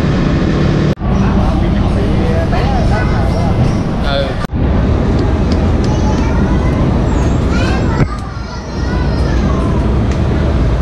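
Many motorcycle engines idle and rumble nearby.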